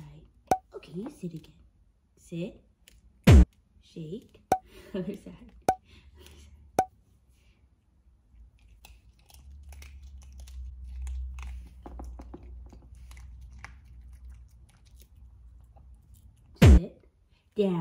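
A lid clicks on a plastic jar.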